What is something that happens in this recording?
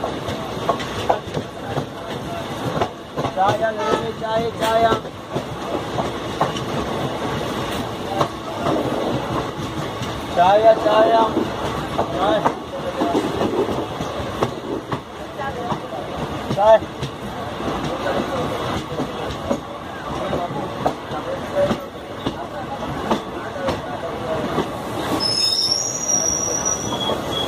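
A passing train rumbles and clatters loudly over the tracks close by.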